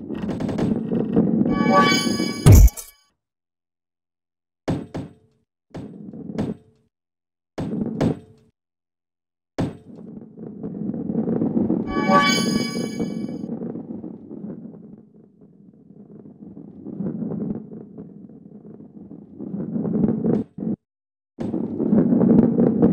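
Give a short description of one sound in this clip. A ball rolls along a wooden track with a low rumble.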